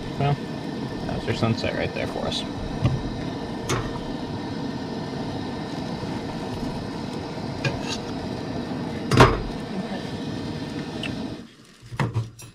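A camping stove burner hisses steadily.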